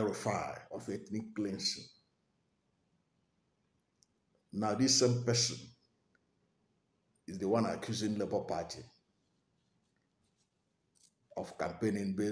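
A middle-aged man speaks calmly and warmly into a microphone close by, in short phrases with pauses.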